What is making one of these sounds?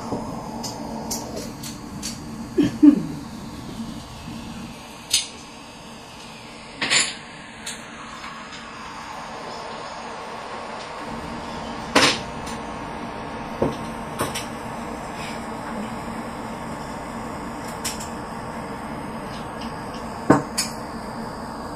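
Mahjong tiles click and clack as hands move them on a table.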